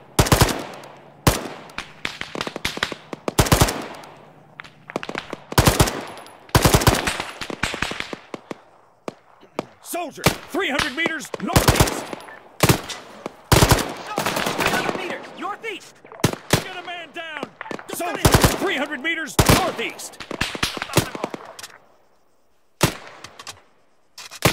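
Heavy gunshots crack out in bursts, echoing across open ground.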